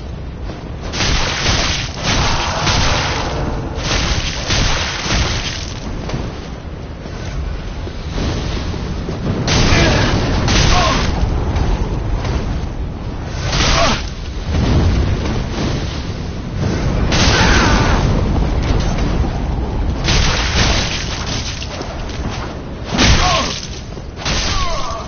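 Swords clash and strike in quick bursts.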